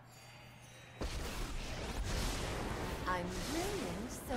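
A game's magical whooshing effect swells and fades.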